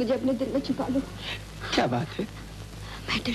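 A woman speaks in distress close by.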